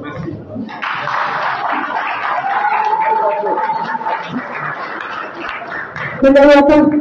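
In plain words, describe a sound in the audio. A crowd chatters and cheers loudly in a large echoing hall.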